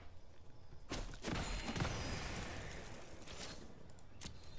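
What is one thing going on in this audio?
A digital card game plays a whooshing attack sound effect.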